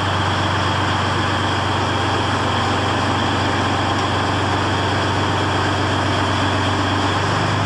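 A heavy tracked vehicle's engine roars loudly.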